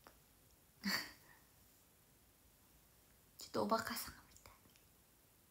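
A young woman speaks brightly and playfully close to a microphone.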